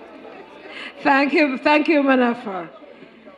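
A woman calls out loudly through a microphone.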